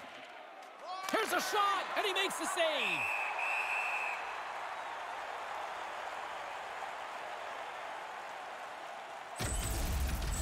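A crowd roars in a large arena.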